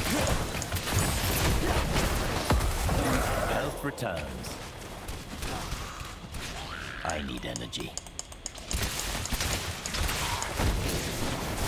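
Lightning spells zap and burst in combat in a video game.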